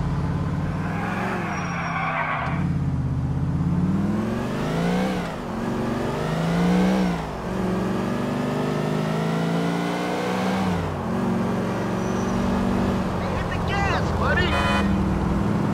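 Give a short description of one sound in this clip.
Tyres screech briefly on the road.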